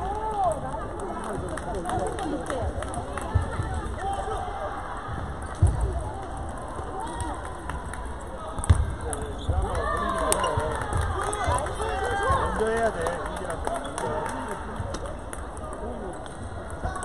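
Ping-pong balls click sharply on paddles and tables.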